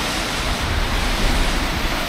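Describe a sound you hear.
A bus engine rumbles nearby.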